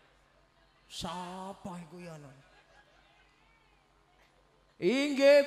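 A middle-aged man speaks with animation into a microphone over a loudspeaker.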